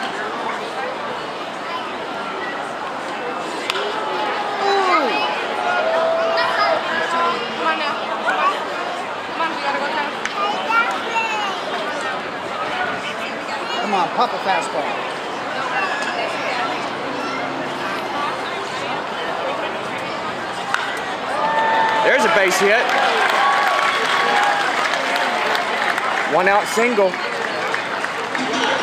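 A crowd of spectators chatters nearby throughout.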